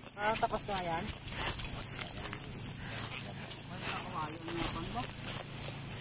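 A dog yelps and barks excitedly outdoors.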